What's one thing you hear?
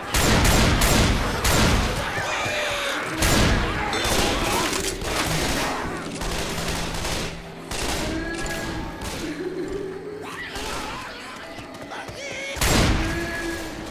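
Shotgun blasts fire in quick bursts, loud and close.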